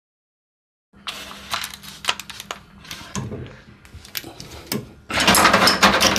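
Metal tools click and scrape against pipe fittings.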